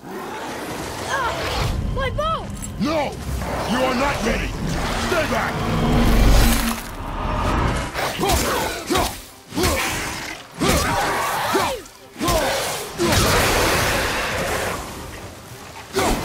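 Creatures snarl and screech.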